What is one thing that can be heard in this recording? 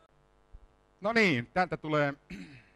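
An electric guitar plays a few notes.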